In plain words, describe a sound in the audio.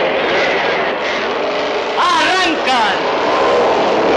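Motorcycle engines roar and rev loudly as the bikes race off.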